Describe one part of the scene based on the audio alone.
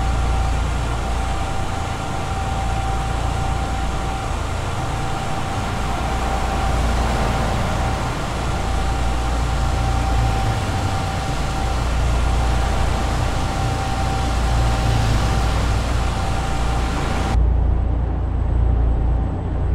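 Tyres roll on the road with a steady rush.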